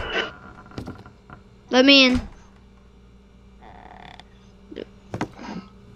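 A wooden door opens with a click.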